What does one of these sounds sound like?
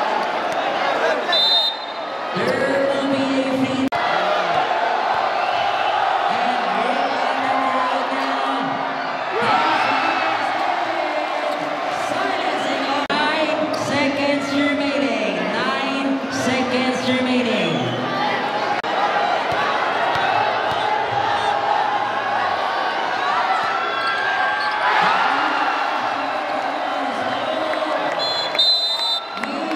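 A large crowd cheers and chants loudly in an echoing hall.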